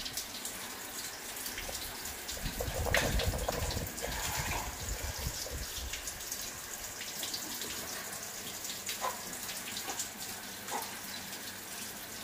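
Monkeys rattle and clink against metal cage bars.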